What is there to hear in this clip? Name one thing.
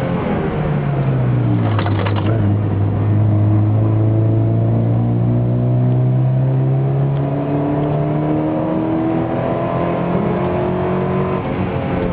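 A four-cylinder sports car engine pulls hard through the gears, heard from inside the car.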